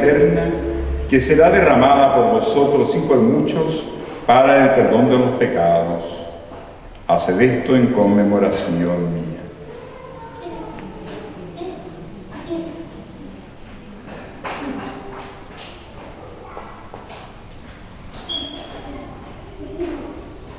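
A man speaks steadily through a loudspeaker in an echoing room, then goes quieter.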